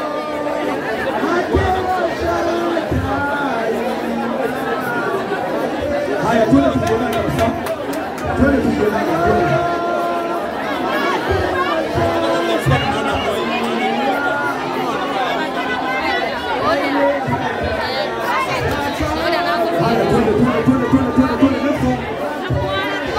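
A large crowd talks and murmurs indoors.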